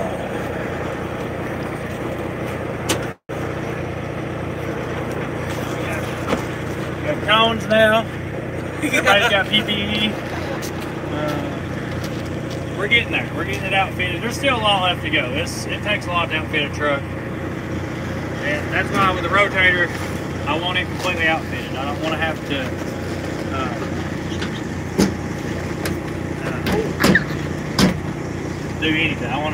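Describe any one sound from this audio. A truck engine idles steadily outdoors.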